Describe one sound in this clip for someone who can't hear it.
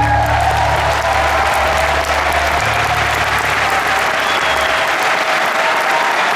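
A rock band plays loudly in a large echoing arena.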